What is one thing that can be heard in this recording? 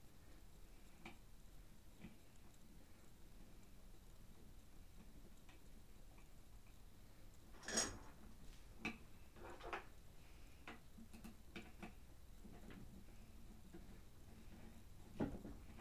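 Plastic parts click and clatter close by.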